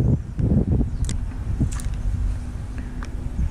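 A fishing reel clicks as it is handled.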